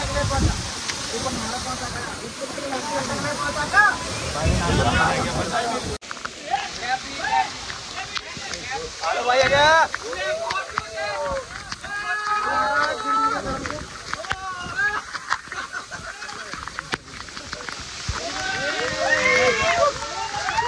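A waterfall splashes and rushes steadily.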